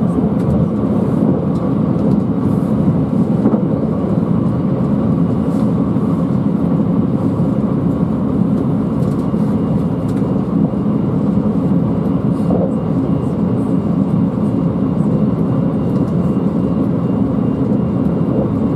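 A train rumbles steadily along the rails, heard from inside a carriage.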